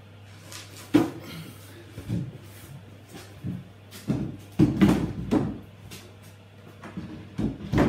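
A cabinet knocks and bumps against a wall.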